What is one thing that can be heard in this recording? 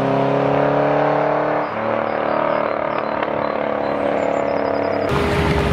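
A sports car engine roars loudly as the car accelerates away.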